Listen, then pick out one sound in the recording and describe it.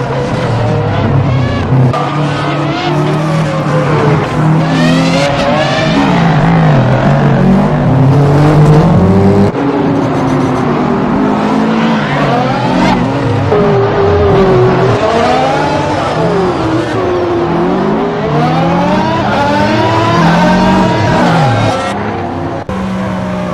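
Racing car engines roar and whine, rising and falling in pitch as the cars speed past.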